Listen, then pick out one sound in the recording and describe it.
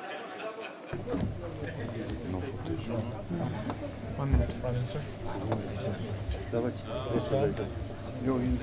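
Men talk quietly close by.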